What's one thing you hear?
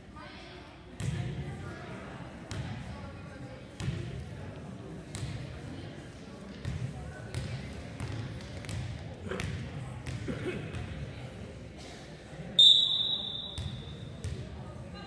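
A volleyball thuds and bounces on a hard floor in an echoing gym.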